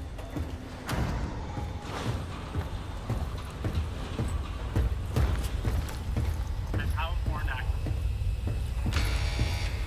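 Boots thud on a metal floor.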